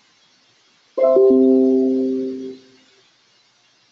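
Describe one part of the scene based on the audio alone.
A computer notification chime sounds once.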